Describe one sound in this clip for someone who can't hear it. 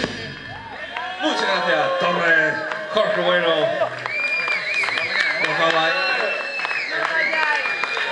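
A live rock band plays loudly with electric guitars.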